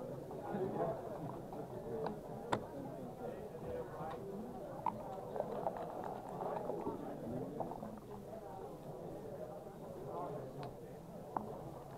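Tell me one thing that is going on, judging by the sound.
Backgammon checkers click as they are moved on a board.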